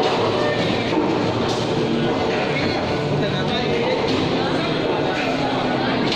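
Bowling balls knock together on a rack in a large echoing hall.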